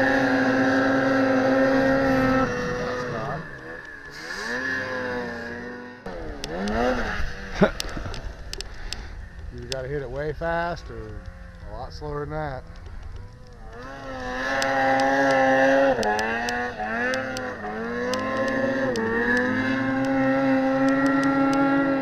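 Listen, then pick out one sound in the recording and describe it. Snowmobile engines whine and rev up and down.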